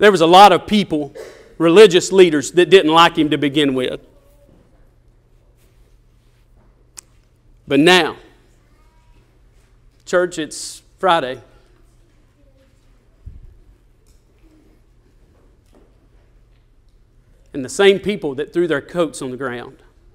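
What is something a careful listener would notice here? A man speaks with animation through a microphone, pausing often.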